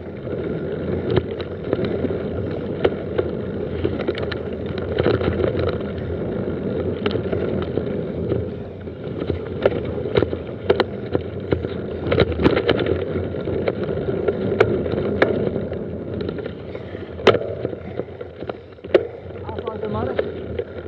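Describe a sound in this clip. A mountain bike's frame and chain rattle over bumps.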